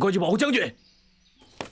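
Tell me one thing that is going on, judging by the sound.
A man speaks sharply up close.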